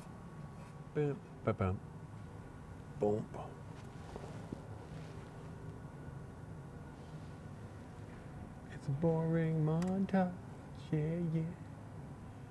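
A man speaks in short, calm phrases close by.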